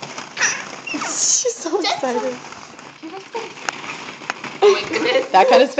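Young children babble and squeal close by.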